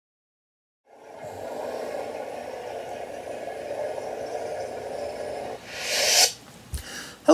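A toy lightsaber hums steadily, then powers down with a short hiss.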